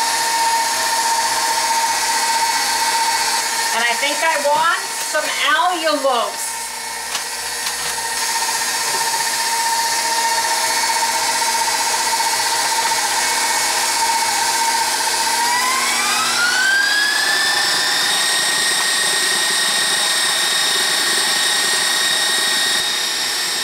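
An electric stand mixer whirs steadily, then speeds up to a higher whine.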